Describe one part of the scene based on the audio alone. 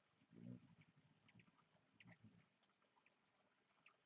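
A hummingbird's wings hum briefly close by.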